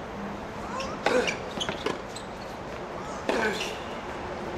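A tennis ball is hit hard with a racket outdoors.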